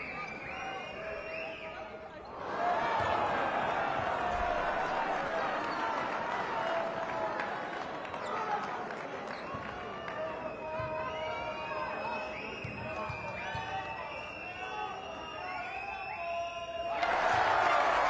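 A large indoor crowd cheers and chatters, echoing through the arena.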